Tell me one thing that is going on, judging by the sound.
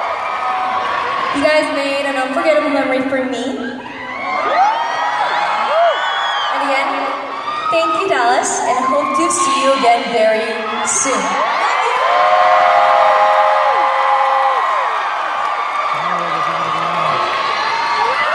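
A crowd cheers and screams in high voices.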